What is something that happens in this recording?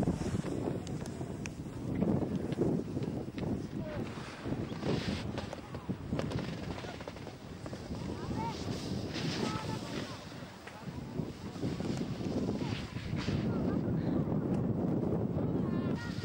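A snowboard scrapes across crusty snow.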